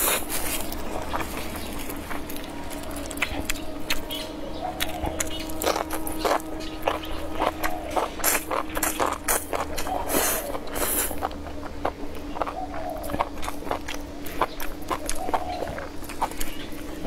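A young woman chews with wet smacking sounds, close to a microphone.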